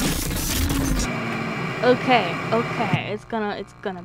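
Loud static hisses and crackles.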